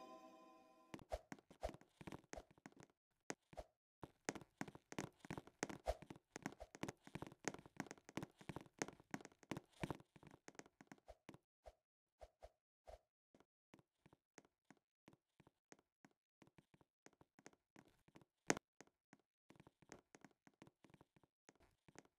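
Bright, plucky music plays in short bouncing notes.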